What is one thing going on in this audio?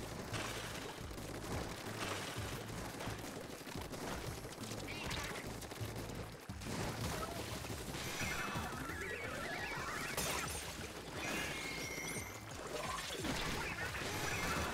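Game music plays steadily.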